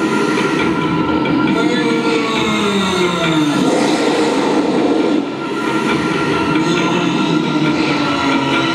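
A man speaks over a loudspeaker in a large echoing arena.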